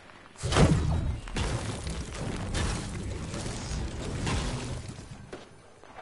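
A pickaxe strikes a wall again and again, with sharp thuds.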